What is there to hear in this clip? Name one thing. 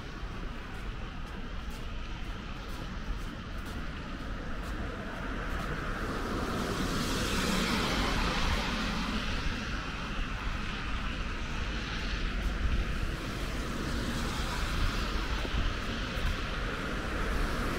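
Footsteps crunch on snow.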